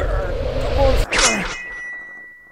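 Metal claws slash through the air with a sharp swish.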